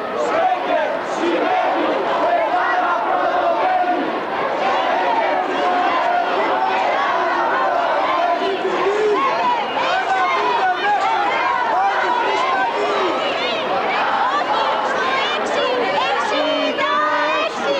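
Many voices murmur and chatter in a crowd.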